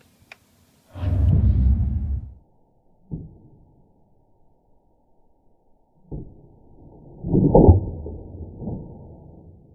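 A toy dart blaster fires with deep, drawn-out thumps.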